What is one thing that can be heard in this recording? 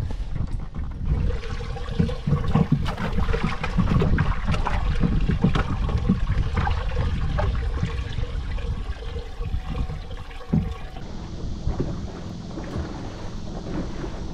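Water laps against the side of a boat.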